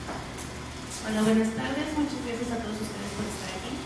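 A woman speaks calmly into a microphone over a loudspeaker.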